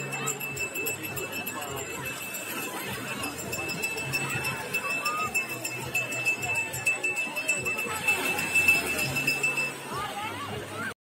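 Small waves wash onto a sandy shore.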